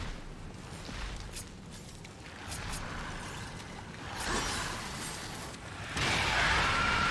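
Rain pours steadily.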